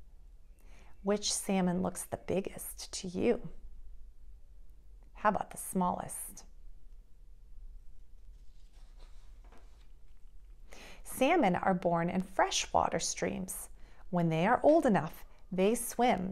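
A woman reads aloud calmly, close to a microphone.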